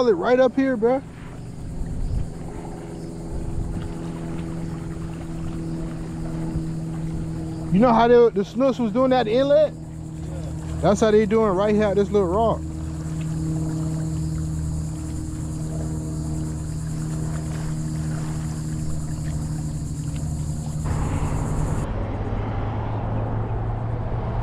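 Water laps gently against a concrete wall.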